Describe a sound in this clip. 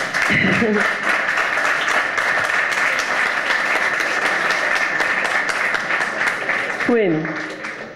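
A crowd applauds loudly in a room.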